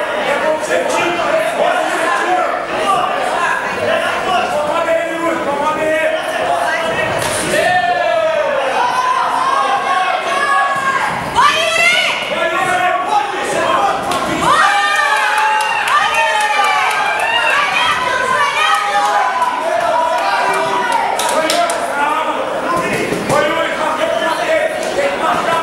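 A large crowd shouts and cheers loudly throughout.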